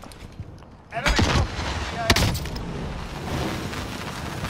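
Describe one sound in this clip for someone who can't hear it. An explosion booms with a roar.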